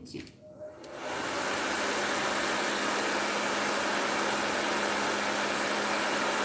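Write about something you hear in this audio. A heat gun blows with a loud steady whoosh.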